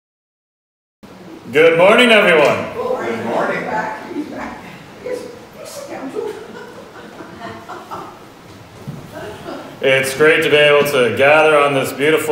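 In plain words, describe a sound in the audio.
A man speaks into a microphone in a hall.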